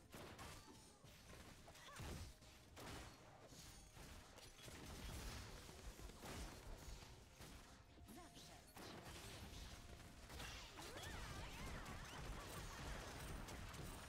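Game combat effects whoosh and crackle.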